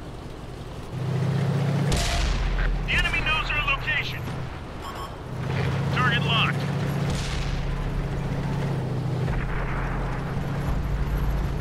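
A tank engine rumbles and revs as the tank drives.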